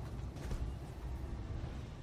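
A large walking robot stomps heavily with deep thuds.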